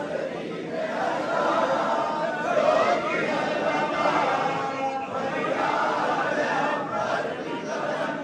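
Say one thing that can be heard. A large crowd of men chants and shouts loudly in an echoing hall.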